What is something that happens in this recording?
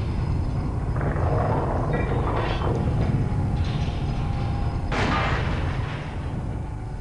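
A man talks casually close to a microphone.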